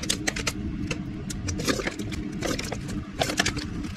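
Oil glugs as it pours from a plastic bottle into a metal pot.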